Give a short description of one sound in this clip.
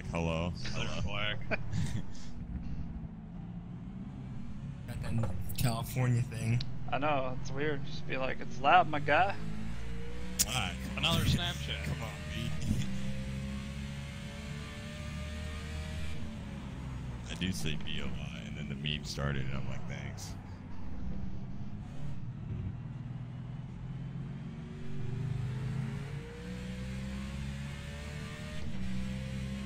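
A race car engine roars and shifts through gears.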